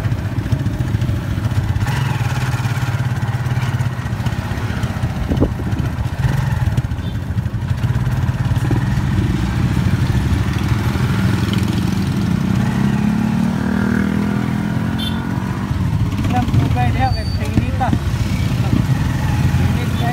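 Traffic hums along a busy street outdoors.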